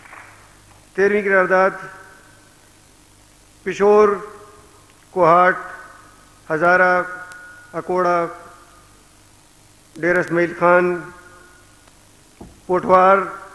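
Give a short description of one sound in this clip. A man recites in a melodic, chanting voice through a microphone and loudspeakers, in short phrases with pauses.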